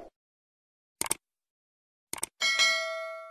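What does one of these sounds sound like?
A mouse clicks twice.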